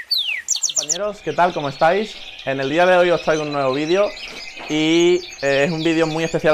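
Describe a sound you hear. Canaries chirp and trill in the background.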